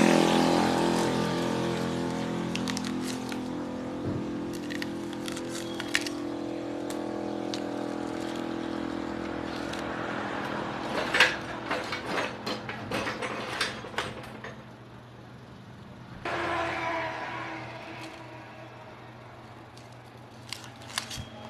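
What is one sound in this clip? A gloved hand rubs and brushes against metal.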